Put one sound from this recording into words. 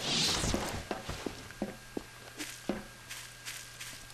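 Footsteps tap steadily on hard ground.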